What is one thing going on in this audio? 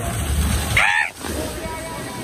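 Water splashes and rushes as a child slides down a water slide.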